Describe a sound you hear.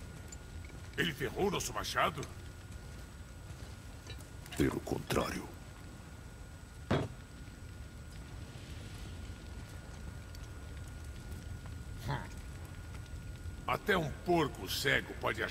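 A gruff man speaks with animation, close by.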